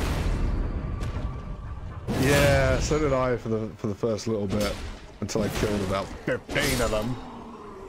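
Game sword strikes clash and thud.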